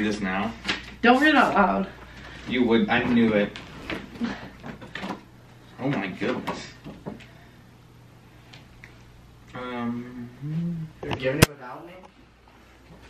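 A young woman talks with excitement close by.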